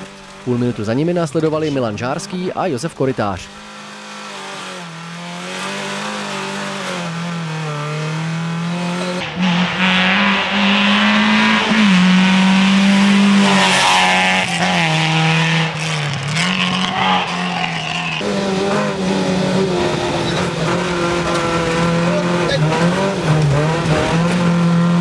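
A rally car engine revs hard from inside the cabin.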